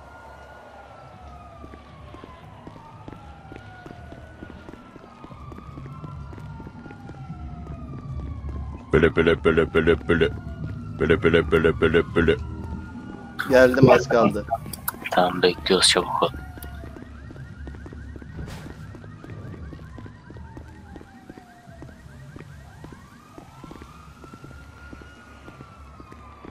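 Footsteps run quickly on hard pavement.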